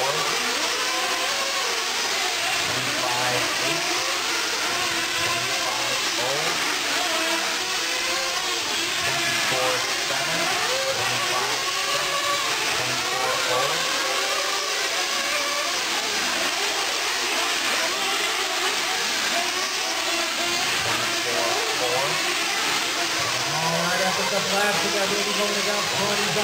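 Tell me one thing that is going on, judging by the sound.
Small electric model cars whine at high speed in a large echoing hall.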